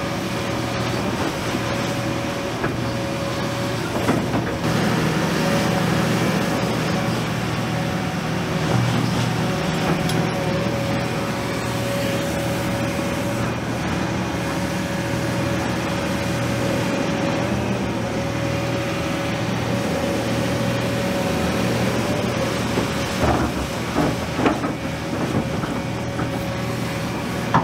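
A diesel engine of an excavator rumbles and whines steadily.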